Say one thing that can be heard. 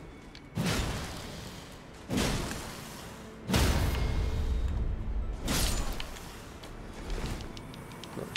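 Heavy weapon blows strike with loud whooshing impacts.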